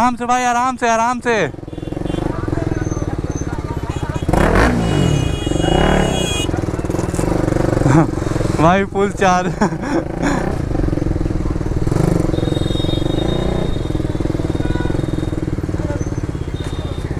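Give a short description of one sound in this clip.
Other motorbikes rumble past nearby.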